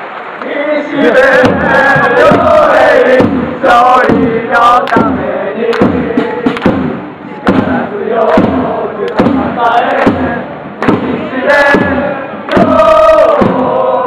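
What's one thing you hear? A group of young men shout and cheer.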